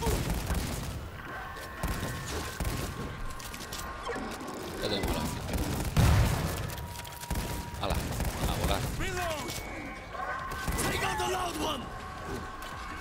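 Gunshots bang in quick bursts.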